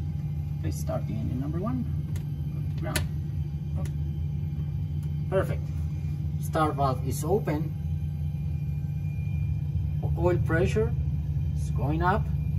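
A low, steady hum fills the cockpit.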